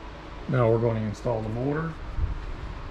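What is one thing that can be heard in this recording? A man speaks close by in a calm voice.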